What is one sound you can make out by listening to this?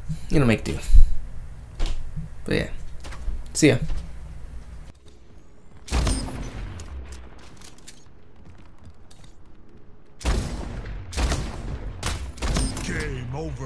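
Sharp rifle shots ring out one after another.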